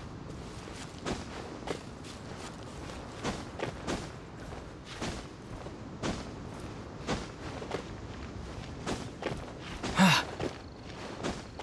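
Footsteps tap and scrape on rock as a figure climbs.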